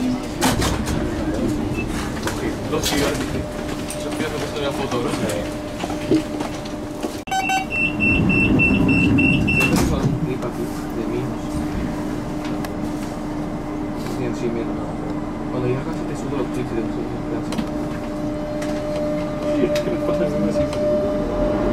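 A train hums and rumbles steadily as it rolls along.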